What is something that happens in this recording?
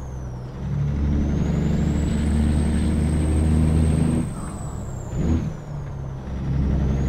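A diesel semi-truck engine drones while cruising on a highway.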